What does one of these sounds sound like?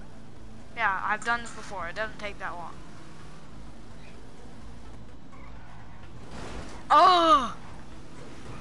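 A car engine hums as the car drives along.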